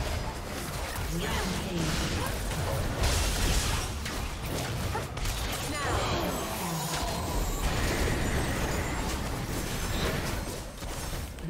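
Spell effects crackle and burst in a video game battle.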